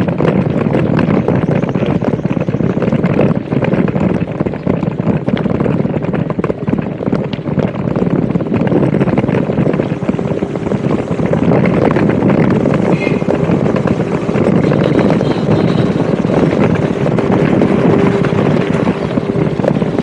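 Wind rushes and buffets steadily while travelling along a bumpy dirt road.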